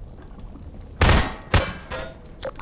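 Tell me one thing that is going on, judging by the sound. Single gunshots ring out.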